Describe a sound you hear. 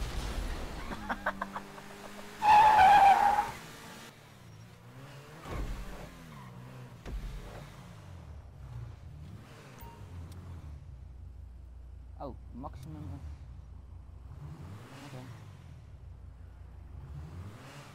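A sports car engine revs up and down.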